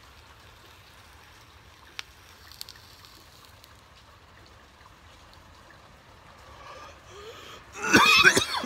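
A man inhales deeply through a pipe.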